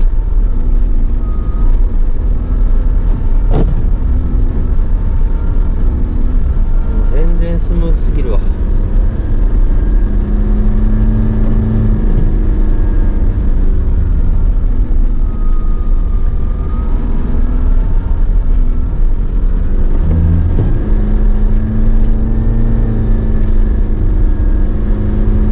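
A car engine hums steadily from inside the car while it drives.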